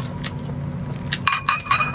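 Plastic gloves crinkle against food.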